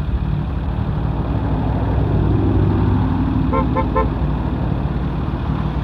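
A rally car's engine idles.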